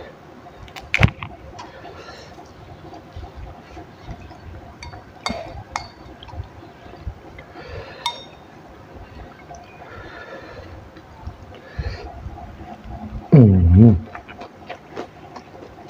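A woman chews food noisily with her mouth close to a microphone.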